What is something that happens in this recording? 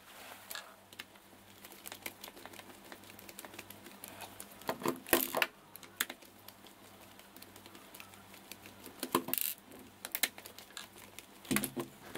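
A small screwdriver scrapes and clicks against a screw.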